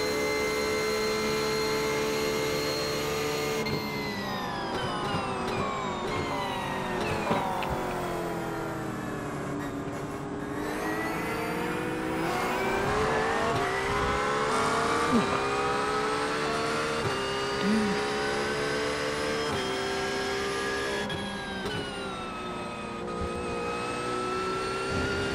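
A racing car engine roars, dropping in pitch as the car slows, then revving up through quick gear changes.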